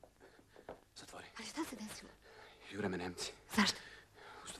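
A young woman speaks urgently and close by.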